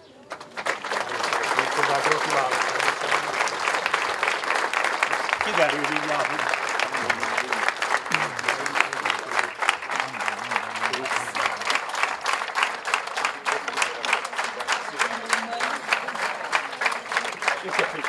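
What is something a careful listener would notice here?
A crowd applauds steadily outdoors.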